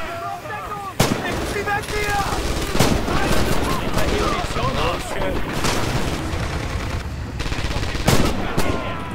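Rifle shots crack loudly nearby.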